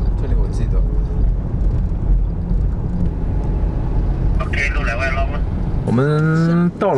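A car engine hums and rumbles steadily from inside the car.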